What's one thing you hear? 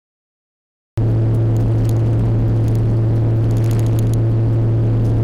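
Tyres crunch and rumble on a gravel road.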